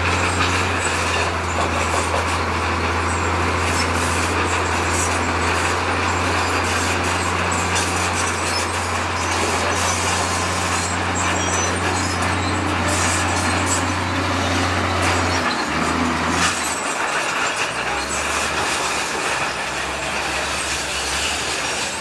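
Bulldozer tracks clank and squeal as they roll.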